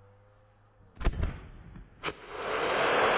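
A firework launches with a sharp bang.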